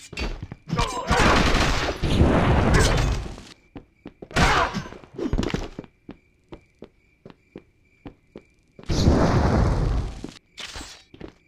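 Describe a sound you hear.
A loud explosion bursts with a roaring whoosh of flames.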